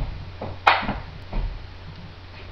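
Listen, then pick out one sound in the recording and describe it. A man knocks an object against a hard counter.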